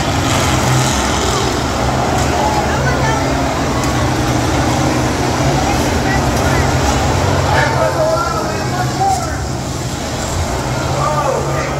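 A tractor engine roars loudly and steadily.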